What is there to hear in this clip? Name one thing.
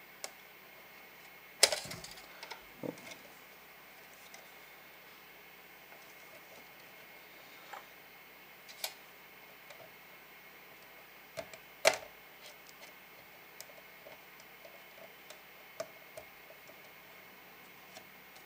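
Test probe tips click and tap against metal contacts.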